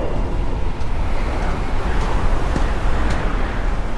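A dark swirling force rumbles deeply.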